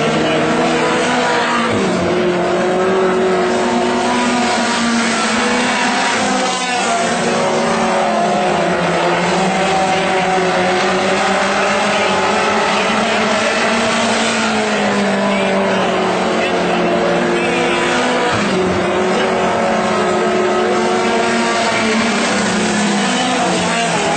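V8 dirt-track modified race cars roar around the track, engines rising and falling in pitch.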